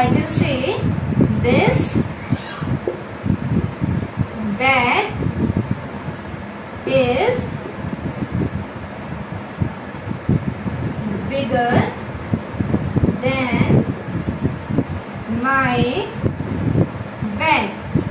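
A young woman speaks calmly and clearly, as if teaching.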